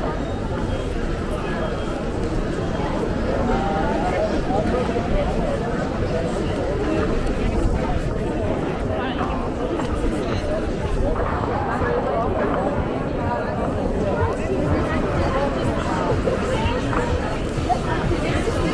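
Many people chatter in a busy crowd outdoors.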